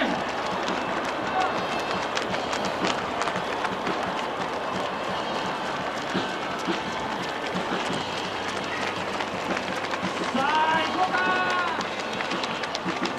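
Many runners' shoes patter steadily on a paved road.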